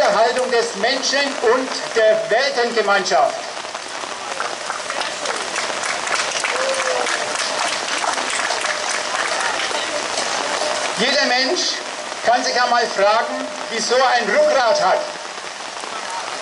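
Rain patters steadily on umbrellas.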